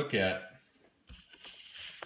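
A finger brushes across a sheet of paper.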